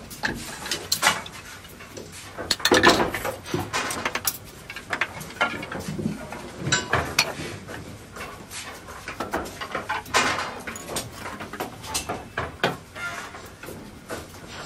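Wooden planks knock and clatter as they are handled.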